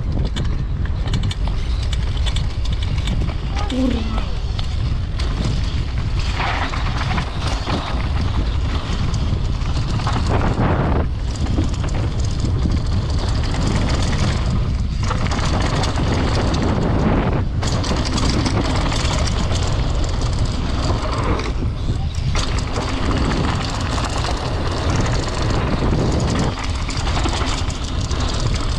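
Bike tyres crunch and rattle over dirt and gravel.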